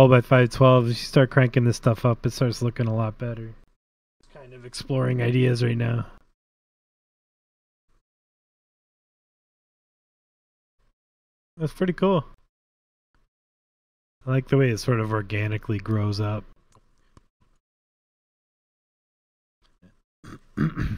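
A man talks with animation, close to a microphone, pausing now and then.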